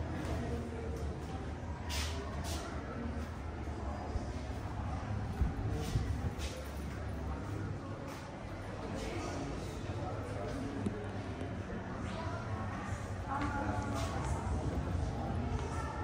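A crowd of visitors murmurs and chatters in an echoing hall.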